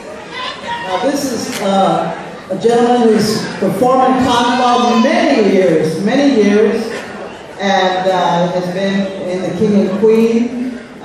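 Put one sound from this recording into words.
An elderly woman speaks into a microphone over a loudspeaker, reading out calmly.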